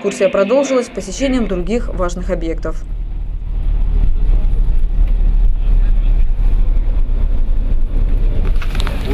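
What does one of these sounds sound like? A vehicle engine rumbles low and steady while driving on a road.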